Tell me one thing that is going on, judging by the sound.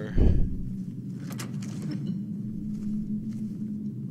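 A heavy iron lock clicks and opens.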